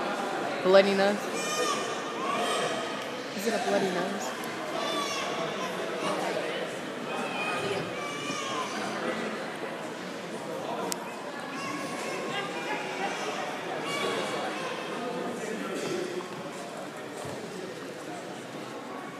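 A crowd of people chatter and call out in a large echoing gym.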